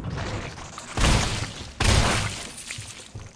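Gunshots bang loudly in a room.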